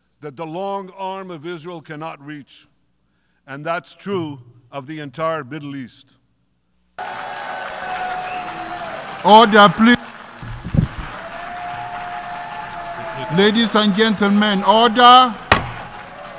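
An elderly man speaks forcefully into a microphone in a large echoing hall.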